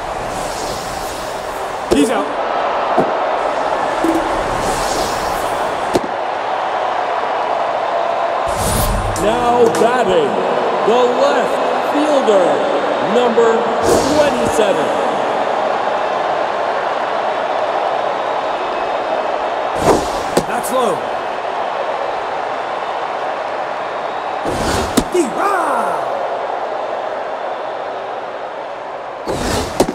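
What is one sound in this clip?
A crowd murmurs steadily in a large stadium.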